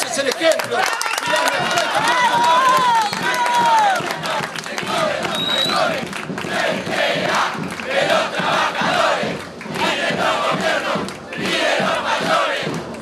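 A crowd of men chants and cheers close by.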